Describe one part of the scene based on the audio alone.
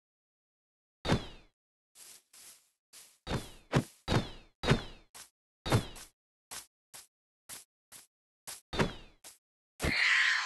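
Repeated sharp hits strike a small creature.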